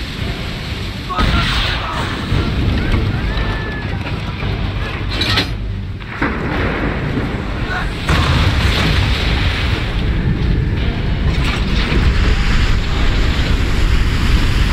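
Rough waves crash and roar against a ship in a storm.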